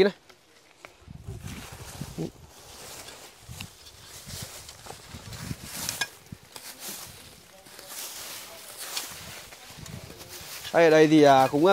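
Dry leaves and twigs rustle underfoot.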